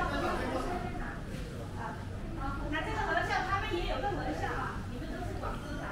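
Young women chat nearby.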